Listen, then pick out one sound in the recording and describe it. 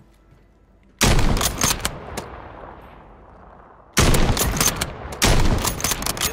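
A sniper rifle fires loud, booming shots that echo away.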